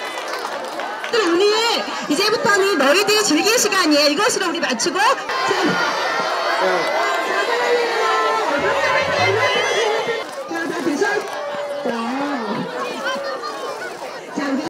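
A crowd of young children chatters and shouts outdoors.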